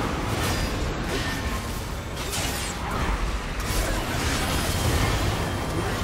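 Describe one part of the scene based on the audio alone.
Magic spells crackle and burst in a fast game battle.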